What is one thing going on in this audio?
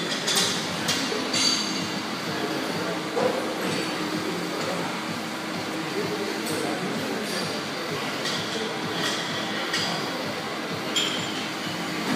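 Metal weight plates clink now and then.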